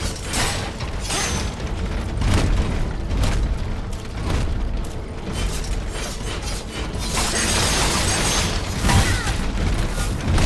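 Heavy blows and crashing impacts land again and again in a fight.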